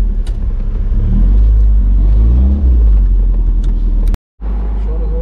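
A car engine revs up loudly as the car pulls away.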